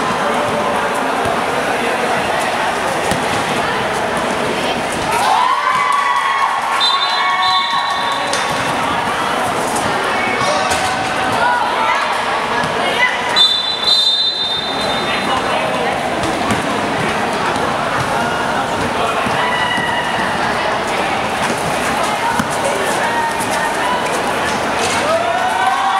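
A crowd of children and adults chatters throughout a large echoing hall.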